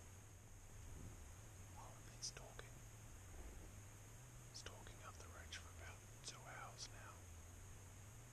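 A young man speaks quietly close by.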